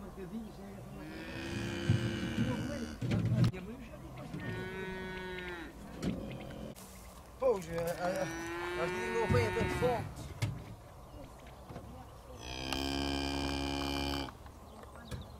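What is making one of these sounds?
Cattle moo loudly nearby.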